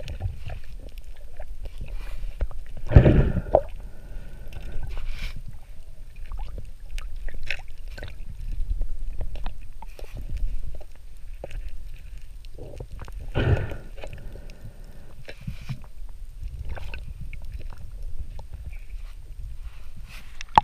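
Water rumbles and swirls around a swimming diver, heard underwater.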